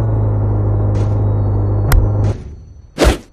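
A car engine hums steadily, then cuts off.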